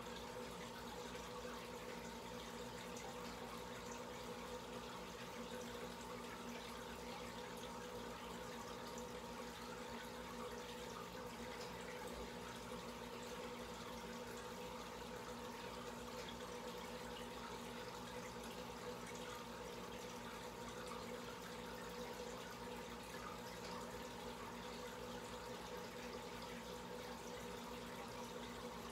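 An aquarium filter hums.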